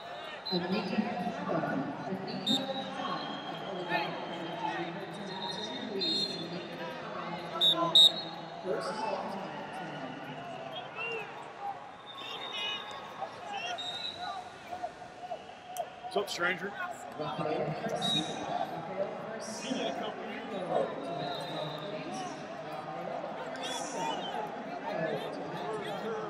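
Shoes squeak on a wrestling mat.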